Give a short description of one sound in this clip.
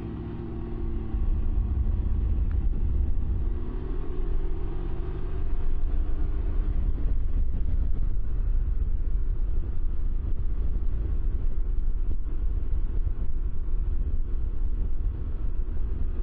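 Wind rumbles loudly past the rider.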